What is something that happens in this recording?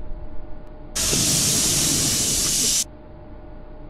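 A tram's air brakes hiss loudly.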